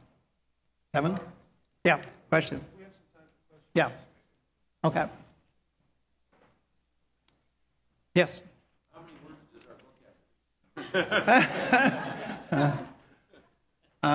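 An elderly man speaks to an audience in a large room, pausing often.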